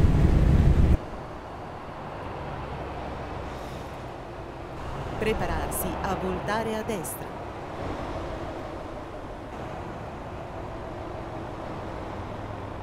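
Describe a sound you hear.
Trucks rumble past on a highway.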